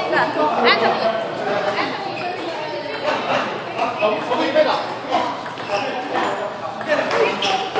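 A table tennis ball clicks back and forth against paddles and the table.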